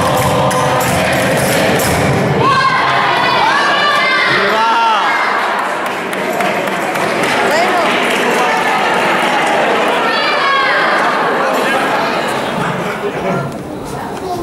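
A crowd of men and women talks and murmurs in an echoing hall.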